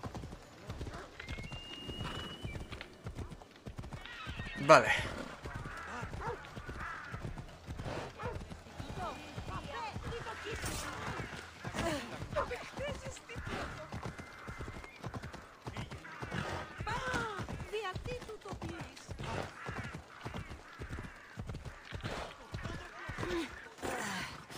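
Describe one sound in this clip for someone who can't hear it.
Hooves gallop steadily on a dirt road.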